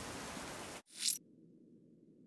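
A menu opens with a short whooshing sound effect.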